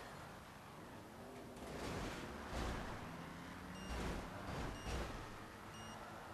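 Car engines roar as cars race along a ramp.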